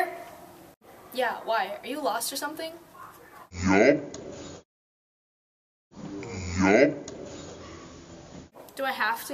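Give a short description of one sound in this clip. A teenage girl speaks close by, with a slight echo.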